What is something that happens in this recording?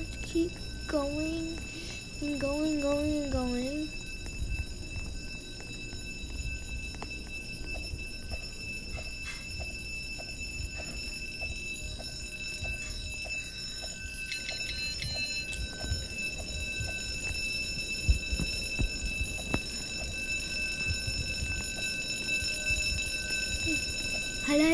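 Light footsteps patter quickly on a hard floor.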